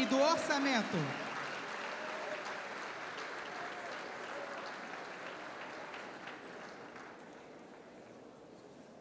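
A crowd applauds steadily in a large hall, then the clapping fades.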